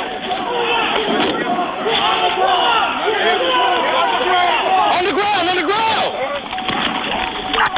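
Men shout commands urgently, heard through a vehicle's microphone.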